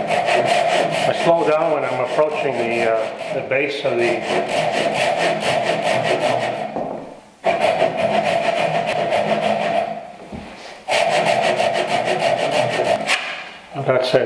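A hand saw cuts rhythmically through wood.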